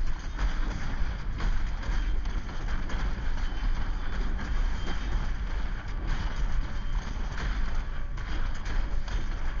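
Game combat effects crash and whoosh with heavy impacts.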